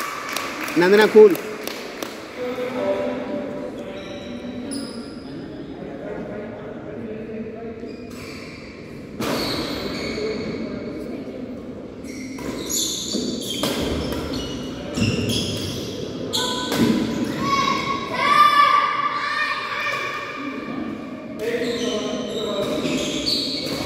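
Badminton rackets hit a shuttlecock back and forth in an echoing hall.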